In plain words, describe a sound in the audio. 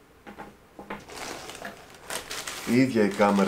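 Plastic wrapping crinkles and rustles in hands.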